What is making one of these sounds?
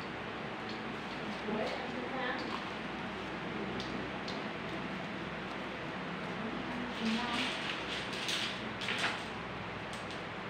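Tissue paper rustles and crinkles as it is folded by hand.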